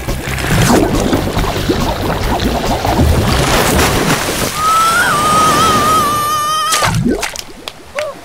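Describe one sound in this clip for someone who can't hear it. Water splashes and churns loudly.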